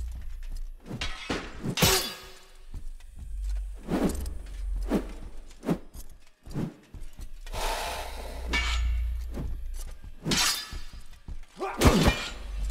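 Swords clash and strike in sharp bursts.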